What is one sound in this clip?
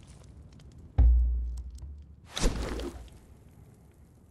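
A menu opens with a sudden whoosh.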